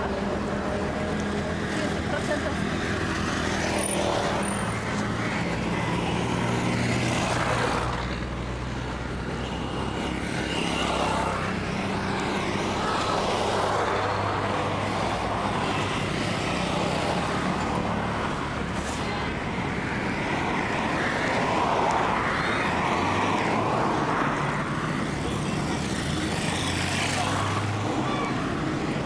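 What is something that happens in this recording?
Traffic passes steadily along a road outdoors.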